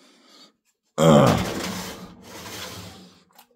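A metal frying pan clanks against a stove grate.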